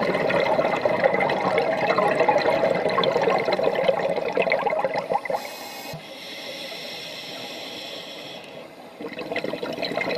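Scuba bubbles gurgle and rush underwater.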